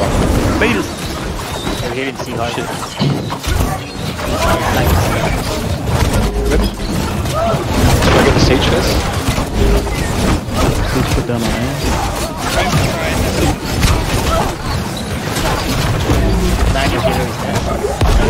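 Magic spells burst and whoosh.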